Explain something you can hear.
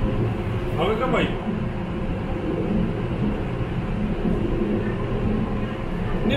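A train rumbles steadily along an elevated track.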